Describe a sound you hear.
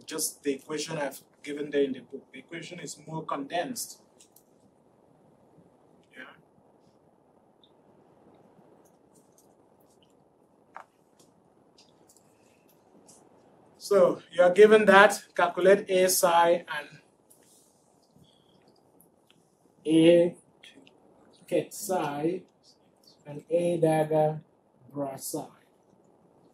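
A man lectures through a microphone, speaking calmly in bursts with pauses.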